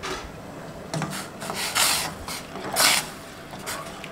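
Water swishes and splashes as a hand stirs a pot.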